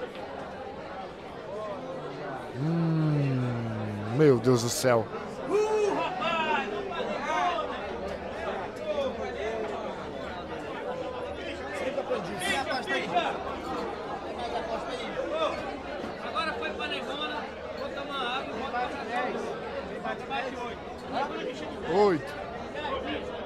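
A crowd of men talks and shouts excitedly nearby.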